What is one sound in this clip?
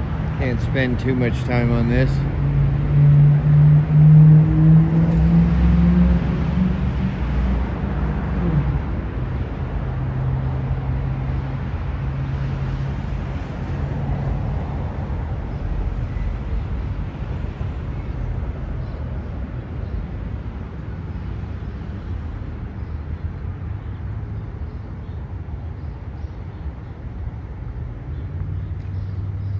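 A large truck engine idles nearby with a low, steady rumble.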